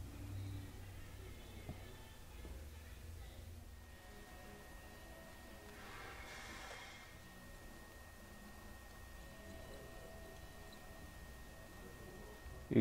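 A soldering iron sizzles faintly against a circuit board.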